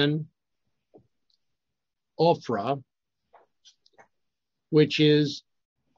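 An older man talks calmly into a microphone over an online call.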